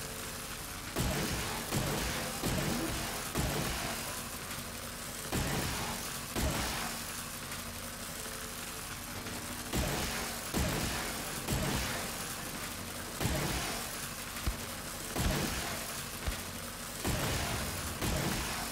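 A heavy gun fires in bursts of loud booming shots.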